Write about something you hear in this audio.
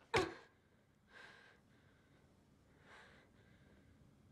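A young woman groans in pain.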